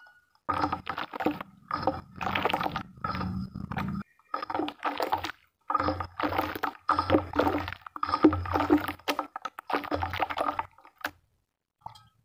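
Hands squelch and slosh through thick wet mud.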